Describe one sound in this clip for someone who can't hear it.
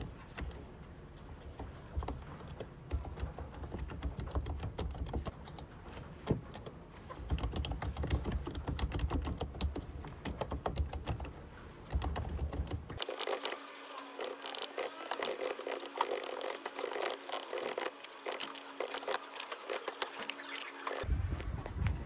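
Keys clatter quickly as someone types on a keyboard close by.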